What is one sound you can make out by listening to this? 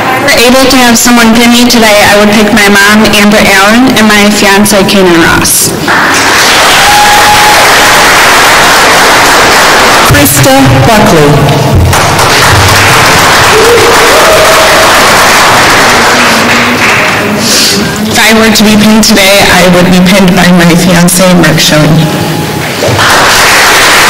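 A young woman speaks into a microphone over loudspeakers in a large hall.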